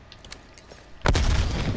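Gunshots crack in a rapid, loud burst.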